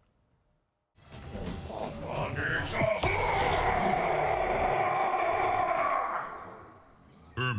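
A magical energy blast whooshes and roars.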